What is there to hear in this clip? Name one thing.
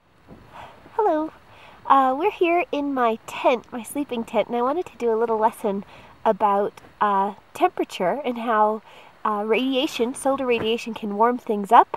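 A woman talks cheerfully and close by.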